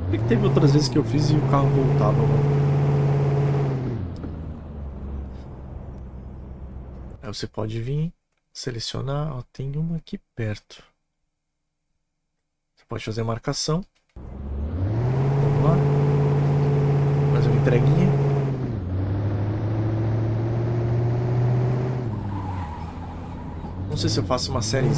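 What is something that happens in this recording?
A truck engine hums and revs.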